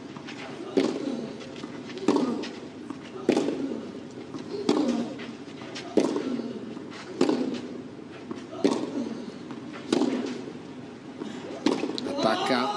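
Tennis balls are struck with sharp pops in a steady back-and-forth rally.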